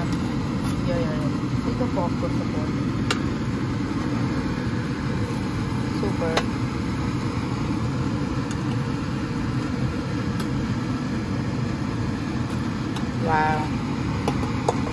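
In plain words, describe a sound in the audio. Food sizzles steadily on a hot pan.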